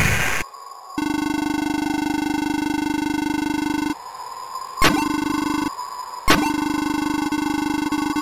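Rapid electronic blips chirp in a steady string.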